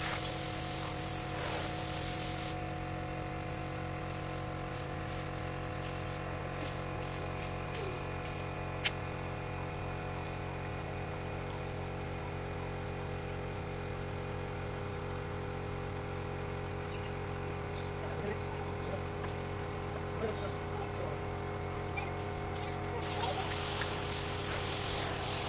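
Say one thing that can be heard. A spray gun hisses.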